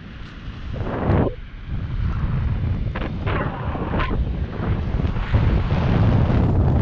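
Wind rushes and buffets loudly against the microphone.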